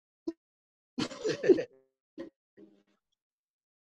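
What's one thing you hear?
Men laugh over an online call.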